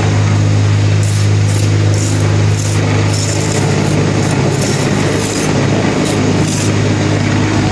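A trowel scrapes across wet concrete.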